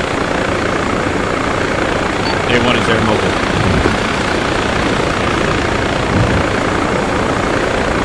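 A helicopter engine drones steadily.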